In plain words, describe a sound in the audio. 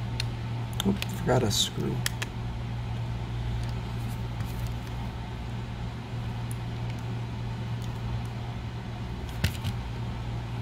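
Hard plastic casing clicks and knocks as it is handled.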